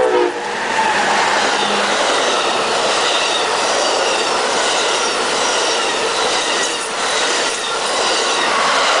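A passenger train rushes past close by, its wheels rumbling and clattering on the rails.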